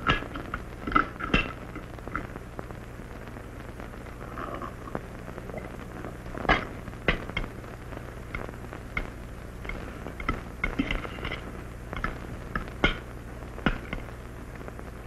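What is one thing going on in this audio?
Cutlery clinks and scrapes against plates.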